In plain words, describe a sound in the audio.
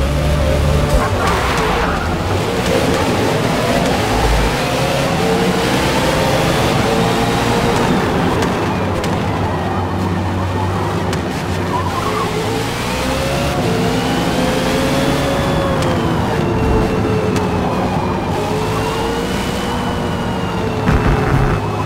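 Race car engines roar and rise and fall in pitch as the cars speed away.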